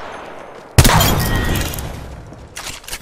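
A gun fires a loud burst of shots at close range.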